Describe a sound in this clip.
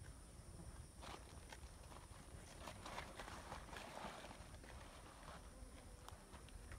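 Goats rustle through dry leaves and brush.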